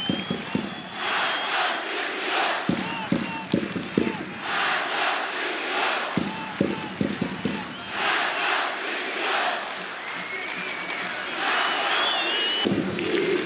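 A large stadium crowd shouts in unison after each round of claps.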